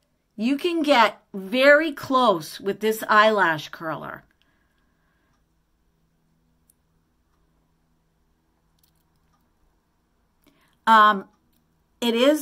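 An older woman talks calmly and close by.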